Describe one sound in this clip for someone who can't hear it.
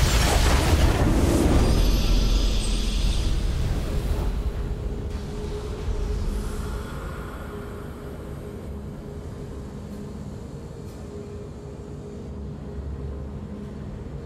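A triumphant victory jingle plays.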